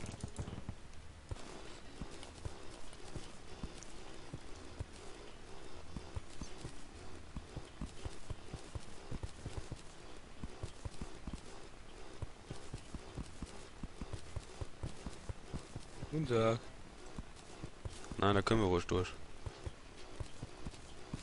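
Rapid digging clicks and thuds come from a game.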